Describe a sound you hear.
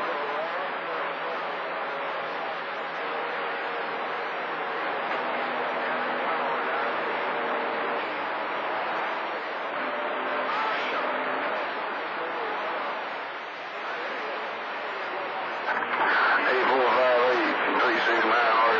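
A radio hisses with loud static and crackle.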